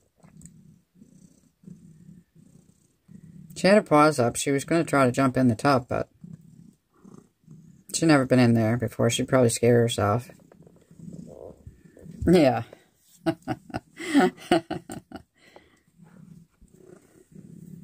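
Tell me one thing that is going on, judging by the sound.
A cat purrs softly.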